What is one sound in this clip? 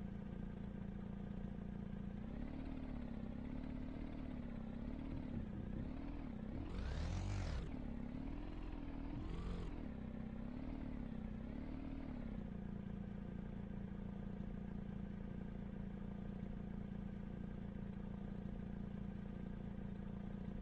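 A buggy engine hums steadily and revs up and down.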